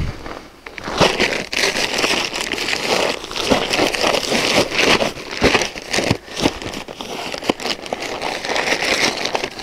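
Dry powder pours from a paper bag with a rushing hiss.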